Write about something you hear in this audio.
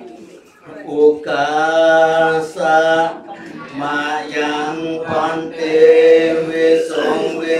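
A group of people chants together in unison, in a steady, droning tone.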